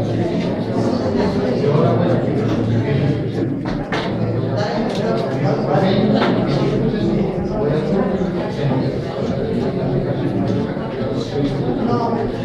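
A middle-aged woman talks with a man, close by.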